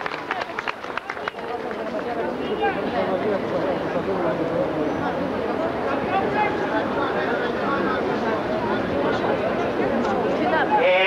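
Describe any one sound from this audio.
A large outdoor crowd chants and shouts together.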